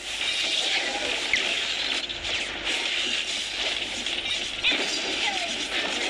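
Game sound effects of spells and strikes crackle and whoosh.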